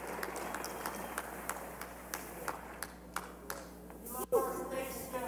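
An audience claps and cheers in a large hall.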